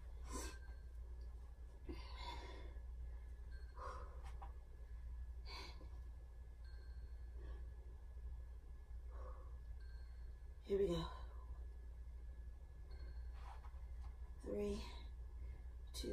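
A woman breathes out hard in short bursts, close by.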